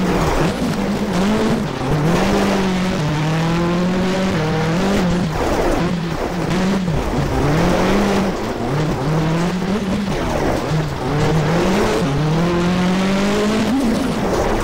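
Tyres crunch and rumble over gravel.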